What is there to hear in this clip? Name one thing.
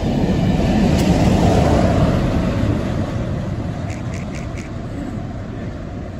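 A diesel locomotive rumbles loudly past close by and slowly fades into the distance.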